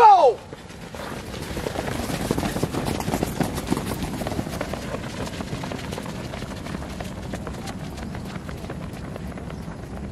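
Many feet patter and thud on dirt as a group runs.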